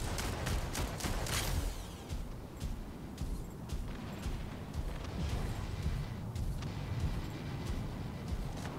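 Heavy robot footsteps clank and thud.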